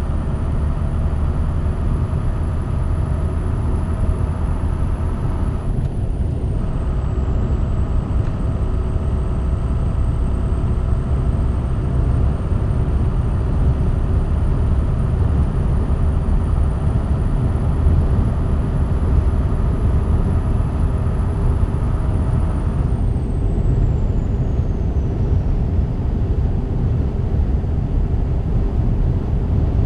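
A truck engine drones steadily at cruising speed.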